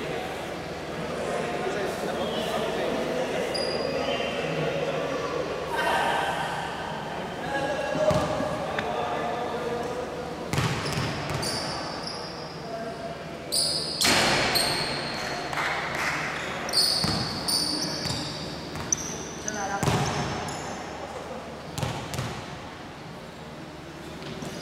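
Players shout to each other across an echoing hall.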